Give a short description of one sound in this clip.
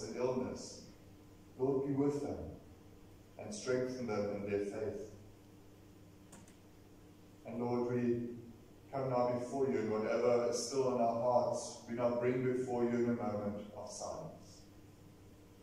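A man speaks calmly and slowly in a large echoing room.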